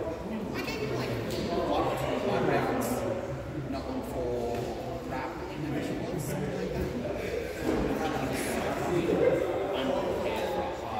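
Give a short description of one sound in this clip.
Several people talk and chatter at a distance in a large echoing hall.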